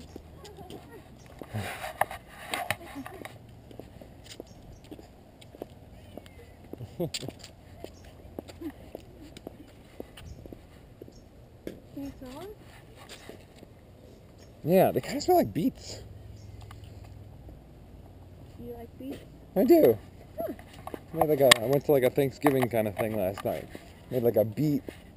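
Footsteps scuff along a paved path outdoors.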